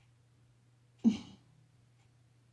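A woman gives a short laugh close by.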